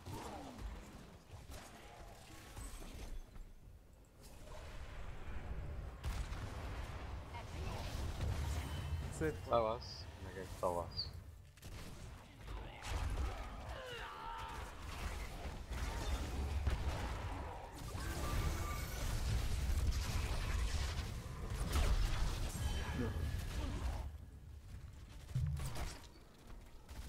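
Game battle effects clash and blast with spell sounds.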